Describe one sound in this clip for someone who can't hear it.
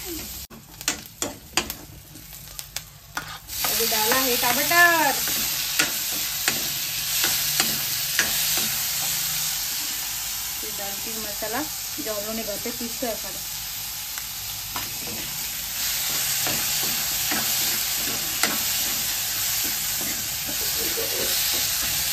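A metal ladle scrapes and clinks against a pan.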